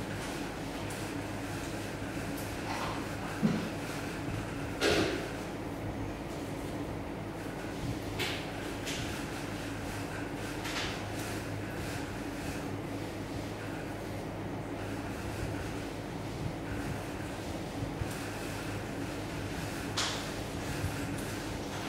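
Cord rustles softly as a man twists it by hand.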